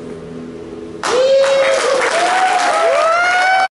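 An electric guitar comes in loudly with wailing, bending notes.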